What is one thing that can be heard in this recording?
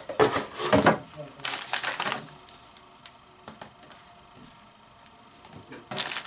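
Paper sheets rustle softly as they are handled.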